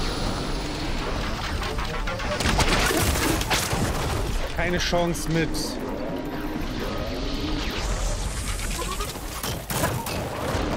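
Blasts and bursts of energy crackle and boom in a game fight.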